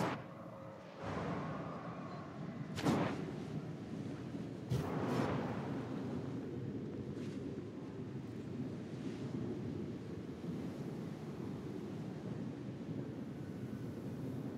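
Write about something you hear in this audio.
Wind rushes steadily past a flying rider.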